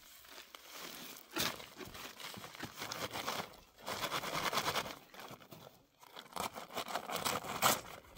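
A paper sack rustles and crinkles as a man lifts and shakes it.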